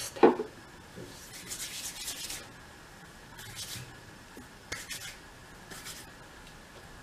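Hands rub together briskly.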